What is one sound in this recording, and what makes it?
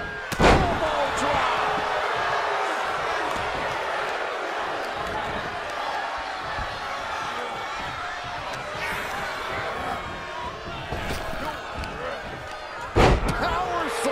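A heavy body slams onto a ring mat with a loud thud.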